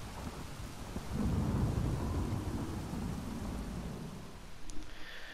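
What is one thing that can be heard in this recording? Water rushes down a waterfall.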